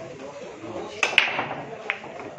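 A cue ball smashes into a rack of pool balls with a loud crack.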